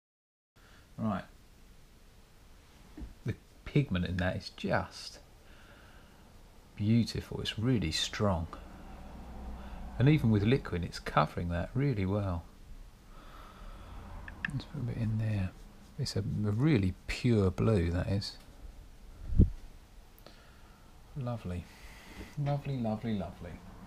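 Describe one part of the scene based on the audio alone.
A middle-aged man talks calmly close to a microphone.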